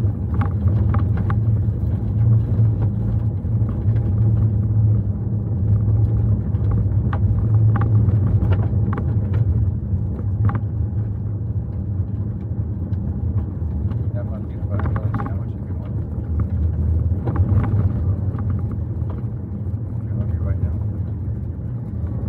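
A car engine rumbles low and steady.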